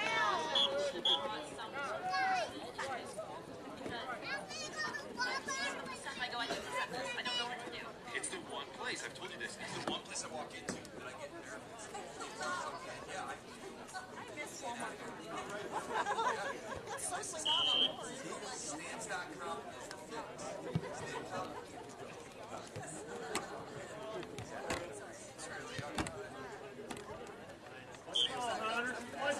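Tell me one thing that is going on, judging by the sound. A referee's whistle blows sharply.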